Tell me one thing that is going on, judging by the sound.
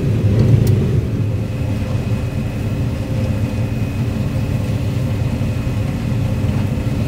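Dry corn stalks crackle and rustle as they are cut.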